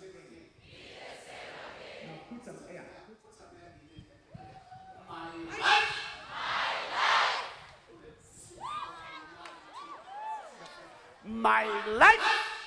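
A man preaches with animation through a microphone in a large hall.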